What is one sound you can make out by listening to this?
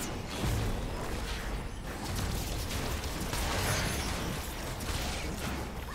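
Spell effects whoosh and crackle in a video game.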